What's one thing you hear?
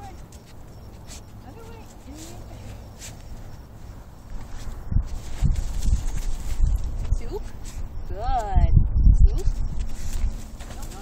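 A dog scratches and digs in dry dirt.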